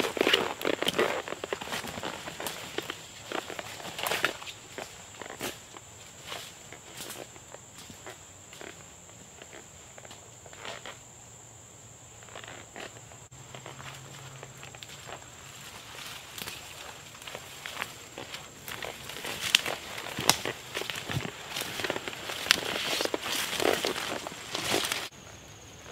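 Footsteps crunch through dry leaves and snap twigs.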